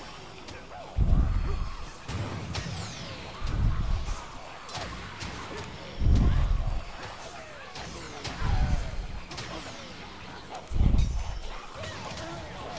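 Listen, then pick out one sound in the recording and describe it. Deep booming explosions erupt again and again.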